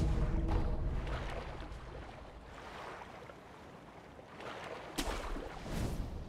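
Water splashes as a swimmer paddles.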